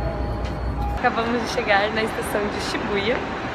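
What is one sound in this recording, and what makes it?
A young woman talks close by with animation.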